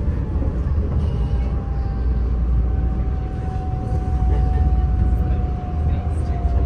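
An electric motor whines with a steady, slowly falling tone.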